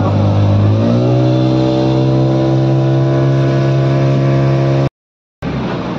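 A boat engine hums steadily as the boat moves across water.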